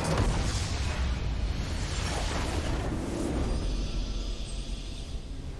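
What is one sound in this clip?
A huge explosion rumbles and roars, then dies away.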